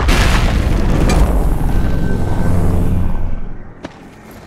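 A deep, loud rumbling whoosh swells and then dies away.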